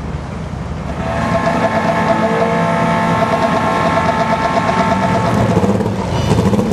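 A motorcycle engine revs loudly and roars away.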